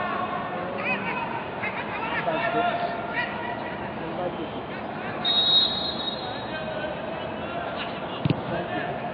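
Men shout and call out across an echoing open stadium.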